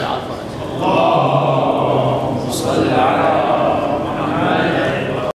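A young man recites melodically into a microphone, heard through a loudspeaker in an echoing room.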